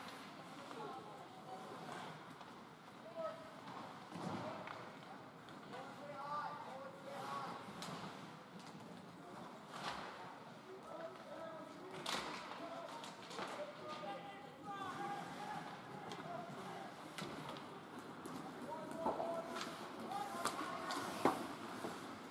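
Spectators chatter in a large echoing rink.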